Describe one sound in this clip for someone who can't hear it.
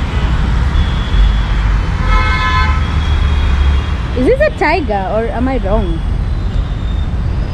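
City traffic rumbles steadily in the distance outdoors.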